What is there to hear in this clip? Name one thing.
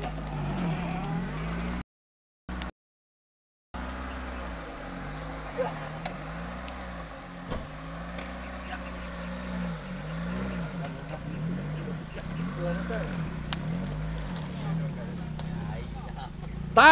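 A car engine revs and strains, rising and falling in pitch.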